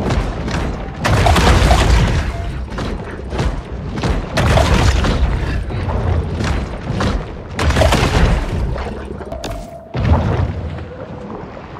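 Underwater bursts rumble and whoosh as a large fish lunges and bites.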